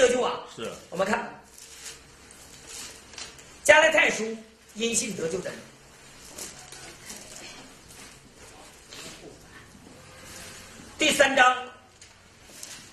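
A middle-aged man speaks through a microphone.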